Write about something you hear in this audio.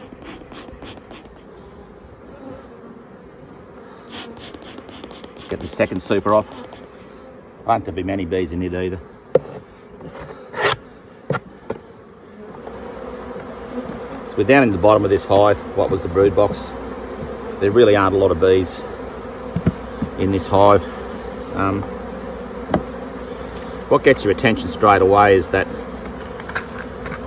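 Bees buzz steadily around a hive.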